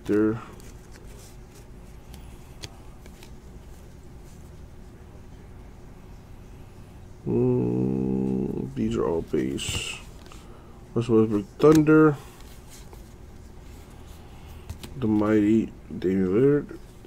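Trading cards rustle and slide against each other as they are shuffled.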